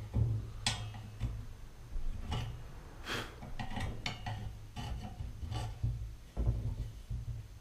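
Metal tools click and scrape against a bicycle part.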